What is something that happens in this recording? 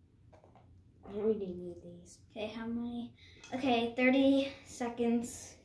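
A young girl talks clearly close by.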